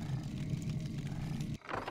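A magic spell crackles and whooshes in a game battle.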